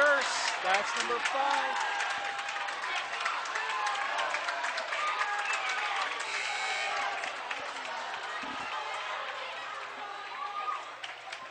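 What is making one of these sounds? A crowd of spectators chatters and shouts in a large echoing gym.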